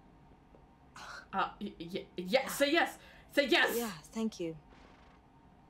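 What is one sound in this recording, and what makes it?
A young woman speaks softly through a microphone.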